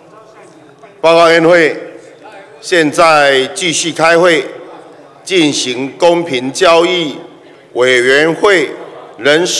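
A middle-aged man reads out formally through a microphone in a large hall.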